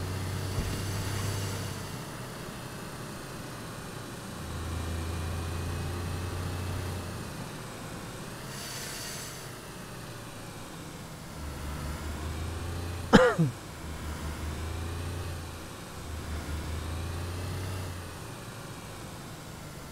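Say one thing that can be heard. Tyres roll on a paved road.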